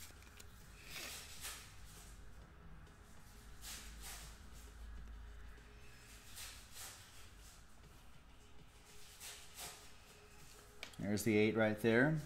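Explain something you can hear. Plastic card cases click and rustle in hands.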